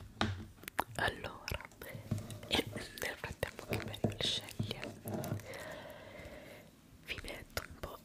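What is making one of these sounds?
A young woman whispers softly, very close to a microphone.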